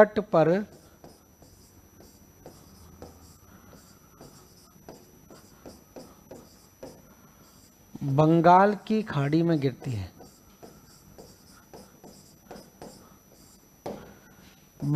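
A marker taps and scratches on a board.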